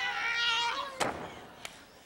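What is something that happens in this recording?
A body slams onto a wrestling ring mat.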